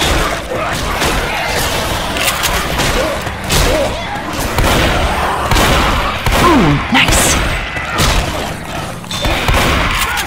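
Zombies snarl and growl up close.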